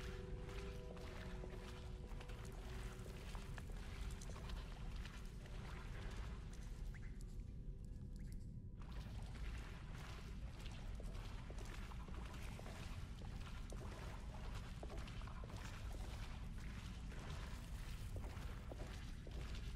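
Footsteps crunch slowly on a stone floor.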